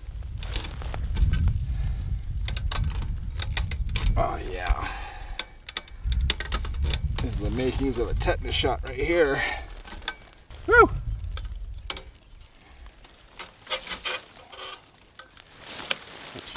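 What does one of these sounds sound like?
Barbed fence wire clicks and rattles as a man handles it.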